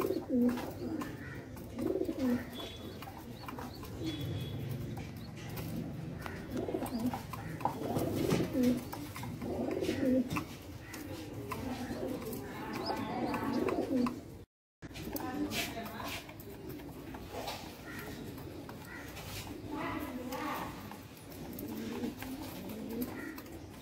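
Pigeons coo with deep, throaty rolling calls, close by.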